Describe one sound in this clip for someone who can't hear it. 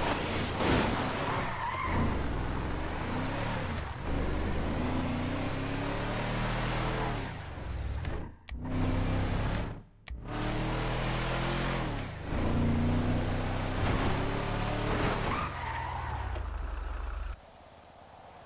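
A truck engine roars and revs as it drives along.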